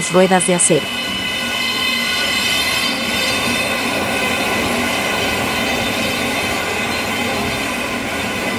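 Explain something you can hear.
A train rumbles steadily through a tunnel, its wheels humming on the rails.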